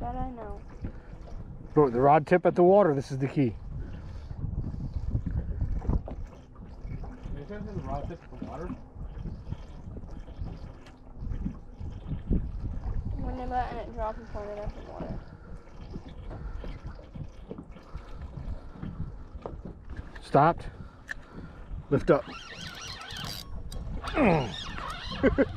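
Wind rumbles across the open water.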